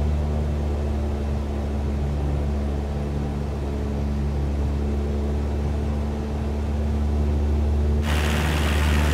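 A small propeller plane's engine drones steadily, muffled inside the cabin.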